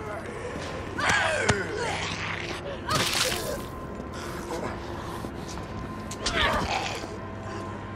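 Heavy stomps thud against a body on the ground.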